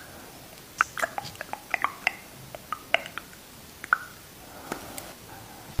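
A lip gloss wand clicks and smacks wetly against lips.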